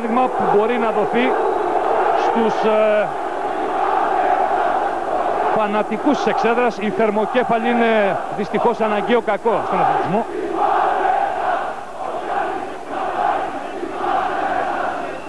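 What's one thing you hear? A large crowd cheers and chants loudly in an echoing hall.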